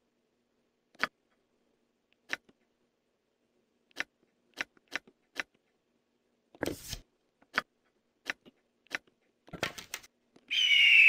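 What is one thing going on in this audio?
Menu selections click softly again and again.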